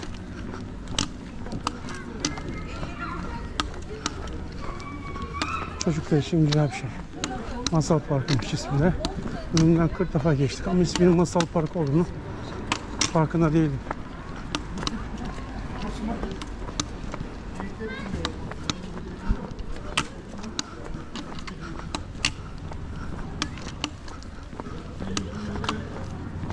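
Footsteps tap on paving stones close by.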